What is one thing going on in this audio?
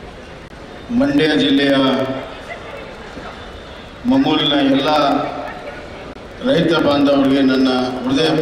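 A man speaks loudly into a microphone over loudspeakers, with pauses.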